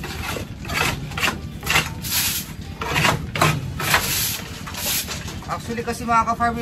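A stiff broom sweeps straw in quick, rasping strokes.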